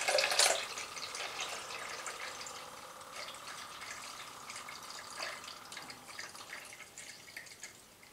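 Liquid trickles from a bottle into a pot.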